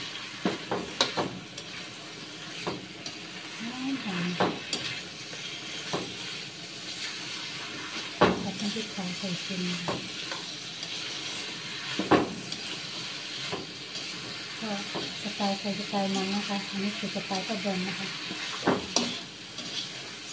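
Food sizzles in oil in a wok.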